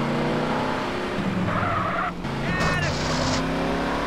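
Two cars bump together with a dull thud.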